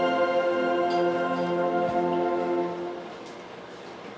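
A television plays a bright startup chime that rings and fades.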